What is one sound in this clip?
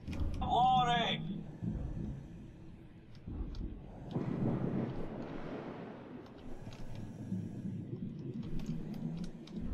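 A metal strut creaks and grinds as it is lowered underwater.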